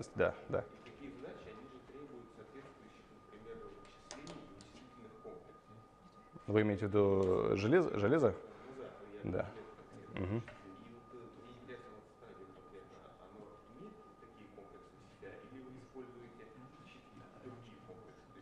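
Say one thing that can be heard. A middle-aged man speaks calmly in a room with a slight echo.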